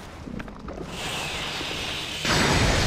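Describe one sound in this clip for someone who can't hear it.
Lightning crackles and bursts loudly.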